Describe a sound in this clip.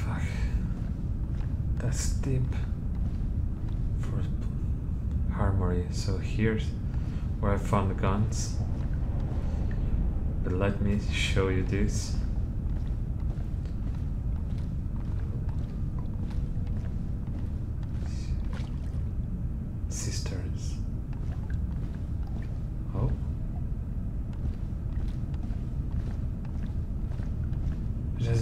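Footsteps tread slowly on hard stone steps and floors.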